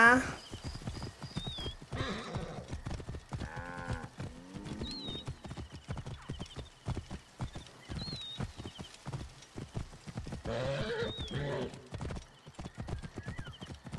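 Horse hooves gallop in a quick, steady rhythm.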